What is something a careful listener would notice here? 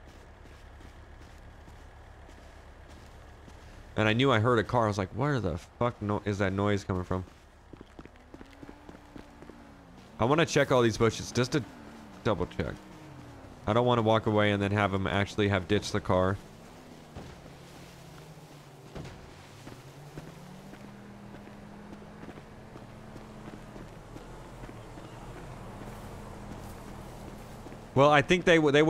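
Footsteps run over dry dirt and gravel.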